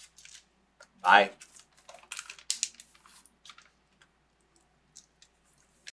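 Snack wrappers crinkle and rustle.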